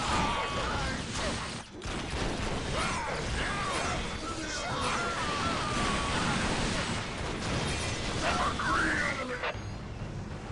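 Gunfire rattles rapidly in a battle.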